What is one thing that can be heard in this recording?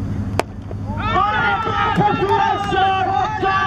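Men shout and cheer excitedly outdoors.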